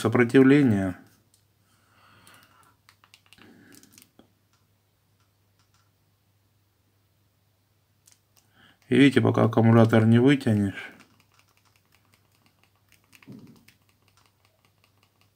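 Small plastic keys click under a thumb.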